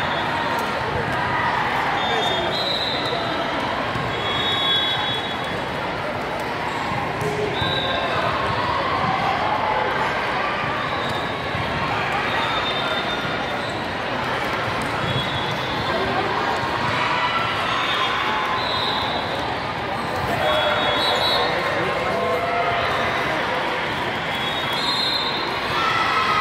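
A crowd chatters throughout a large echoing hall.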